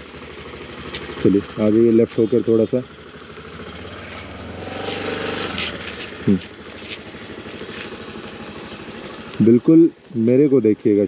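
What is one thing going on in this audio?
A scooter engine hums and grows louder as it approaches.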